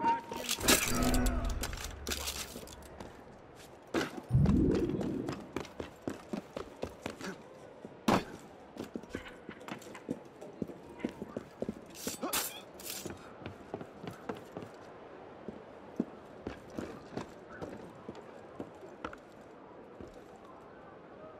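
Footsteps patter quickly across a tiled roof.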